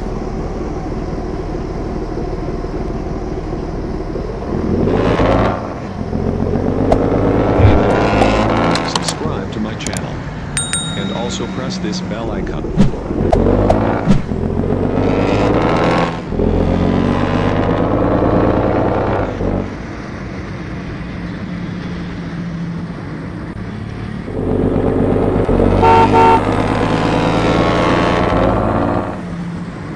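A car engine revs up and down as it accelerates.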